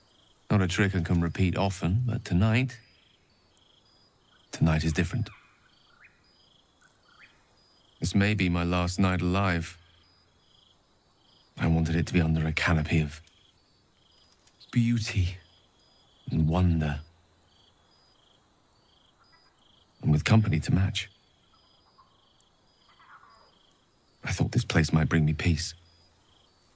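A man speaks calmly and softly in a warm, low voice, close to the microphone.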